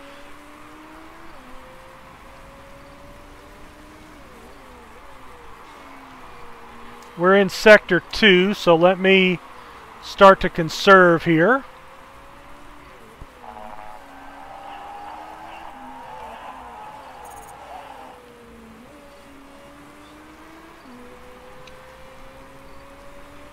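Racing car engines whine and drone as cars pass.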